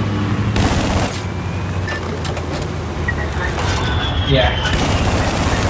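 A deck cannon fires repeated loud shots.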